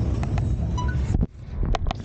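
A finger rubs against the microphone.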